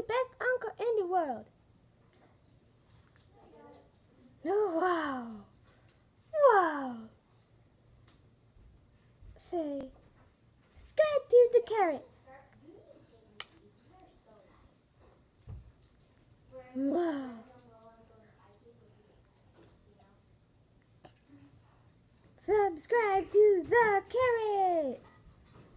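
A boy talks playfully close by, in short bursts.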